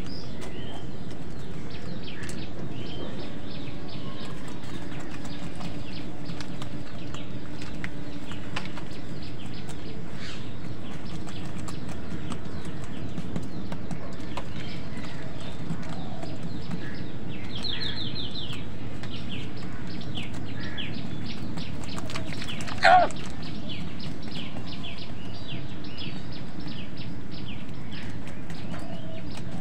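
Crows peck at food in a bowl with quick, light taps.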